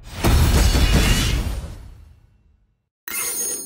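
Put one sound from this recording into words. A triumphant game jingle bursts out and fades away.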